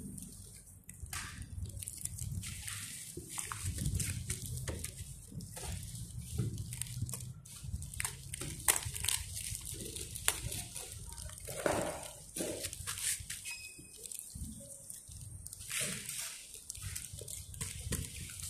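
Packing tape rustles and crinkles as hands press it onto a mailer.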